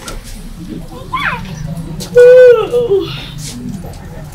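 A woman cries out with a wailing voice.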